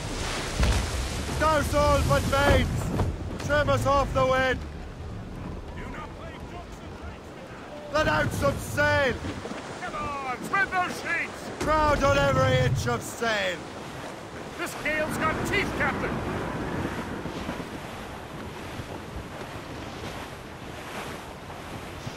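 Waves wash and splash against a sailing ship.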